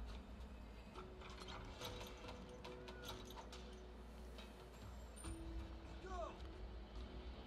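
Soft chimes ring.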